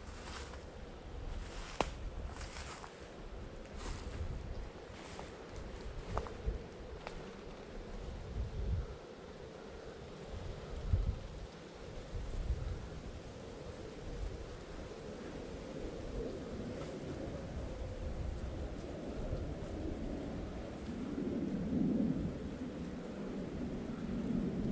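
Wind gusts through the trees outdoors, rustling the leaves.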